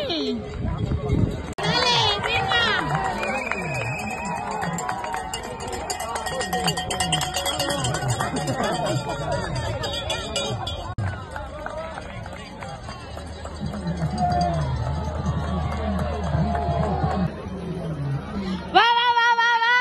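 A crowd of people chatters and cheers loudly outdoors.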